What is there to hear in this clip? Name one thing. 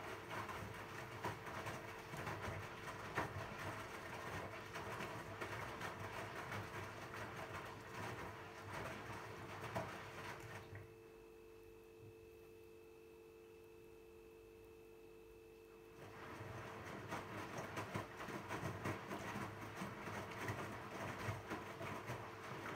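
A washing machine drum tumbles laundry with sloshing, thumping sounds, pausing for a few seconds midway.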